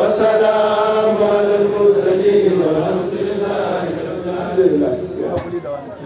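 A man speaks through a microphone with a singing, chanting voice.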